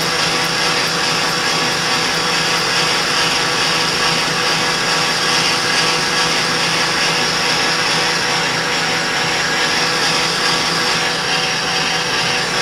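A lathe motor hums and whirs steadily.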